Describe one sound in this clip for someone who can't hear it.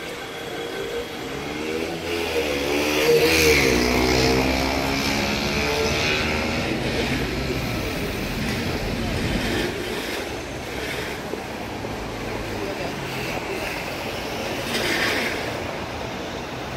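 A helicopter's engine starts up and whines outdoors.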